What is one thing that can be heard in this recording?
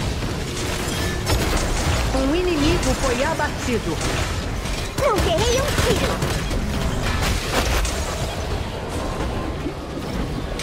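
Fighting sound effects of a video game clash and burst rapidly.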